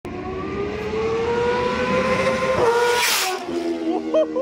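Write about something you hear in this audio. A motorcycle engine drones, rising in pitch as it approaches and whooshes past.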